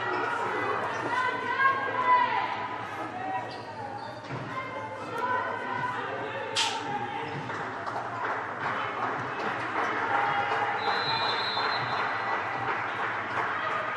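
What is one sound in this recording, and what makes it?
Young women shout and call out to one another in a large echoing hall.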